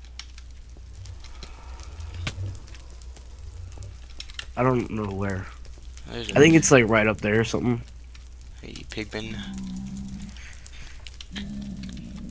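Fire crackles softly.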